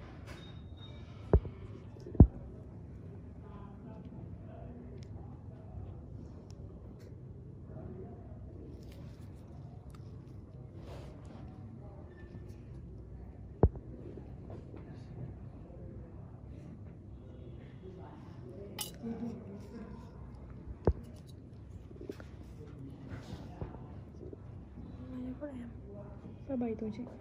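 Gloved fingers squeeze and rub against skin with faint soft rustles.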